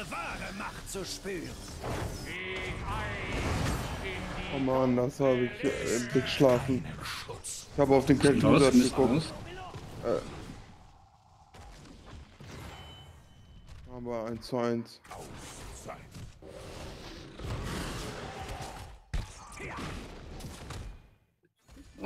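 Game spells and blasts crackle and boom in a busy battle.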